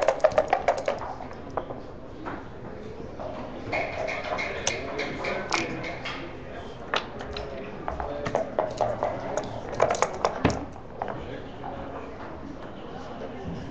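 Dice rattle and tumble across a wooden board.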